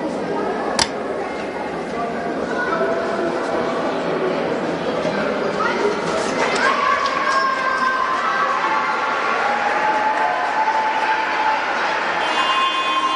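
Voices of players and spectators murmur and call out in a large echoing hall.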